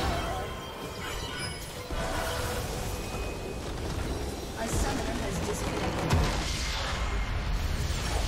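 Magic spells crackle and whoosh in rapid bursts.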